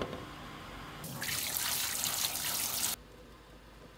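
Water runs and splashes into a sink.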